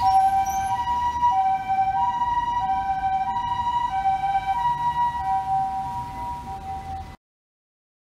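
Traffic rumbles along a street.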